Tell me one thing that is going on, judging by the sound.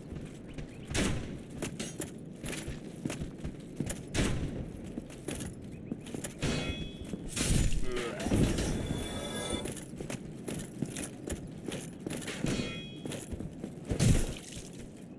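A heavy weapon strikes with a loud impact.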